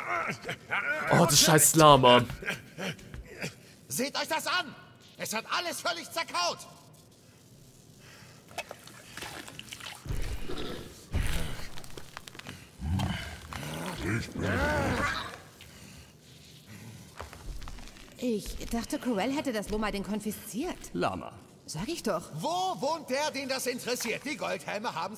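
A gruff male voice speaks with animation, close by.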